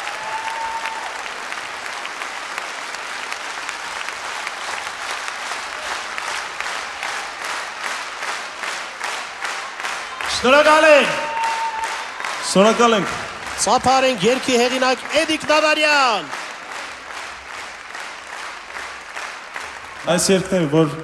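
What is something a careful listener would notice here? A large crowd claps in rhythm in a big hall.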